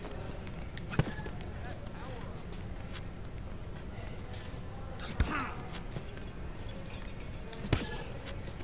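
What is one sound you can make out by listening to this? Fists thud against a heavy punching bag.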